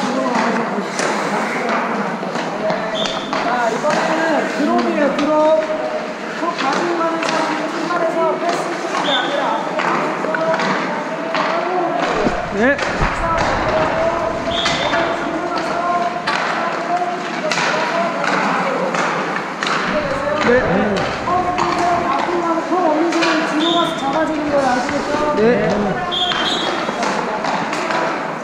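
Skate blades scrape and glide on ice.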